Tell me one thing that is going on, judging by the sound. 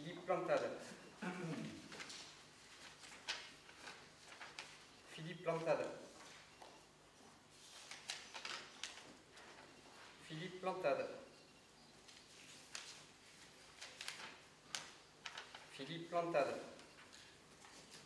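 A man reads out short phrases aloud in an echoing hall, pausing between them.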